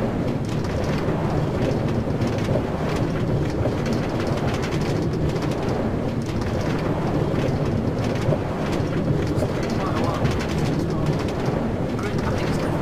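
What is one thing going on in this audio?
A cart rumbles and rattles steadily along metal rails.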